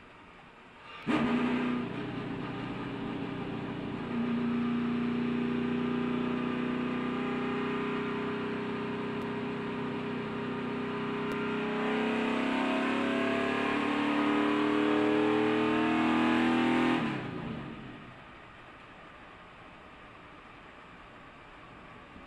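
Wind rushes past a moving car.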